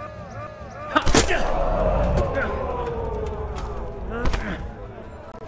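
Steel swords clash and ring against each other.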